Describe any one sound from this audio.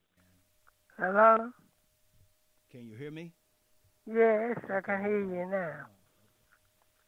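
A man speaks calmly and expressively into a microphone, in short phrases with pauses.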